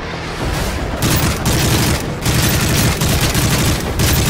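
Rapid gunfire rattles loudly in bursts.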